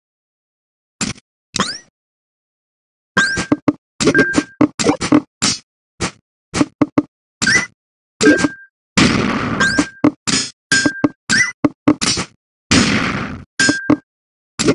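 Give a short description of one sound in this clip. Video game sound effects click and chime as falling blocks lock into place.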